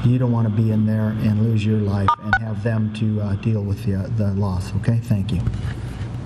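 An older man speaks calmly into microphones.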